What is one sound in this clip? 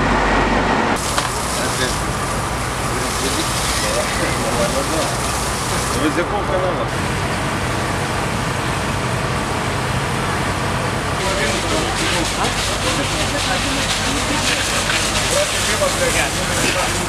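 A fire hose sprays a strong jet of water with a steady hiss.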